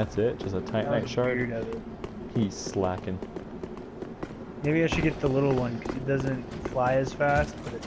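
Armoured footsteps run on stone.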